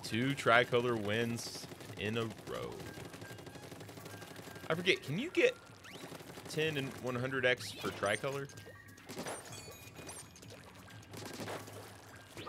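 A video game weapon sprays ink in wet, squelching bursts.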